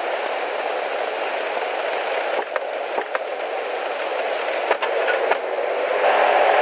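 Rain falls steadily outdoors.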